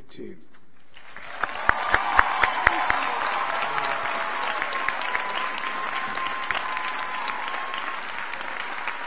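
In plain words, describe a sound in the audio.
A large crowd applauds and cheers.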